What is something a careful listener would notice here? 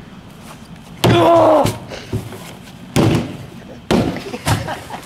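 A plastic bat whacks a plastic trash can with loud hollow thuds.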